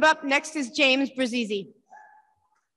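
A woman speaks through a microphone.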